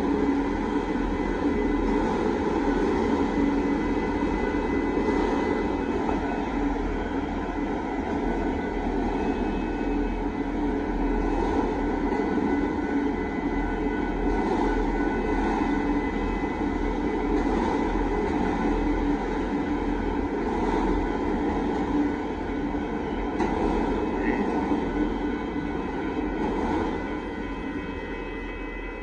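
A freight train rumbles and clatters past, close by.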